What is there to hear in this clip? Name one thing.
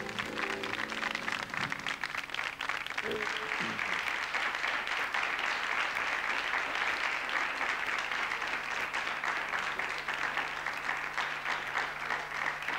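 A large audience claps and applauds.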